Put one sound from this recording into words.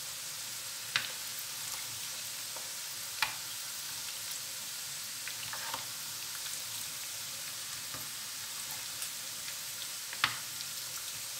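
A metal ladle clinks against a pot.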